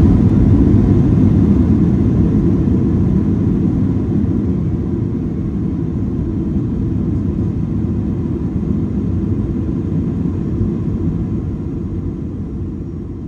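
A jet engine roars loudly as a plane rolls down a runway, slowly quieting.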